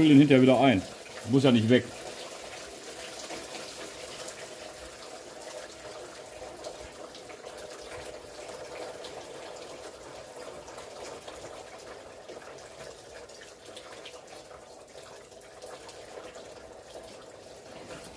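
Hands fiddle with a plastic wire connector, clicking and rustling softly.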